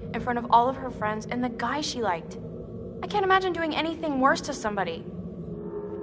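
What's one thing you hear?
A young woman speaks fearfully, close by.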